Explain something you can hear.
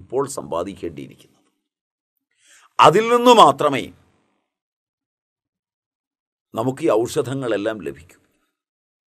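An elderly man speaks calmly into a nearby microphone, in short phrases with pauses.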